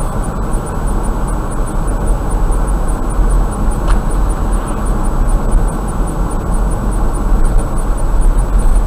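A car drives steadily along a road, with a low rumble of engine and tyres.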